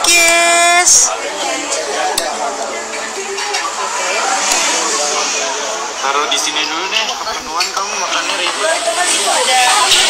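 Men and women chatter in the background.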